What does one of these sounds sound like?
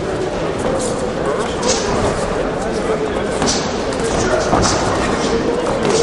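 Gloved punches land with dull thumps.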